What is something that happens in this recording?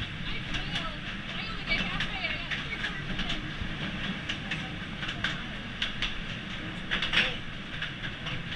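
Metal wheels click and squeal on the track.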